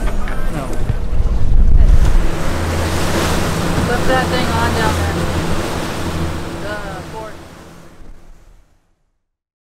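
Water rushes and splashes in a boat's wake.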